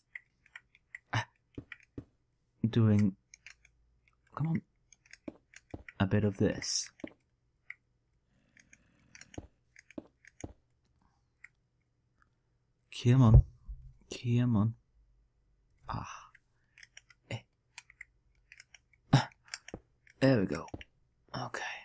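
Stone blocks are set down with short, dull knocks.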